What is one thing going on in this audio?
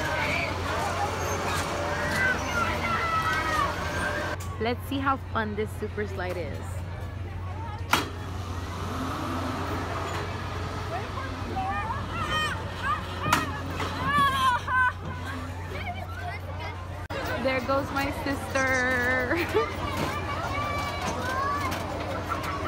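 A crowd of people chatters and shouts outdoors.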